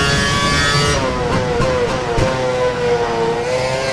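A racing car engine drops in pitch as it slows and shifts down through the gears.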